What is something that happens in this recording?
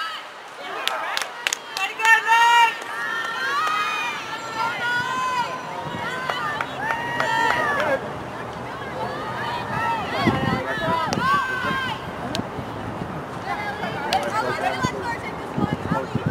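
Young women shout and call out to each other on an open field.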